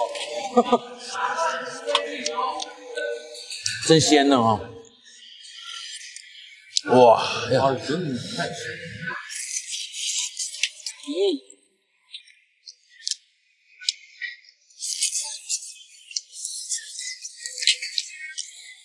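Two men slurp and chew loudly.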